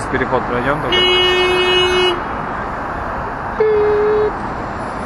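A car horn honks in long steady blasts.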